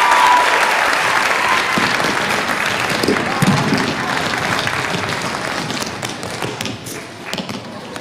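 Shoes tap and thud on a wooden stage.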